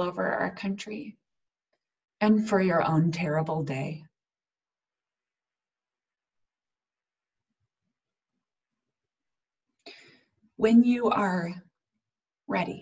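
A young woman speaks calmly over an online call, pausing between phrases.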